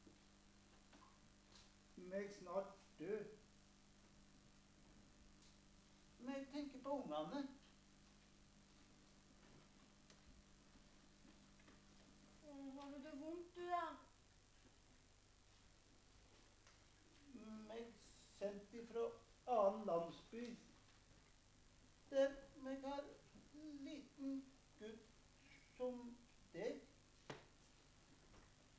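A boy answers in a young voice, heard through a microphone.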